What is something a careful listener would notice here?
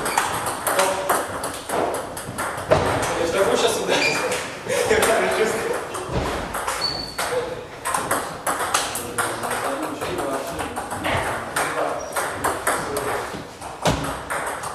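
A ping-pong ball clicks rapidly back and forth on a table and paddles.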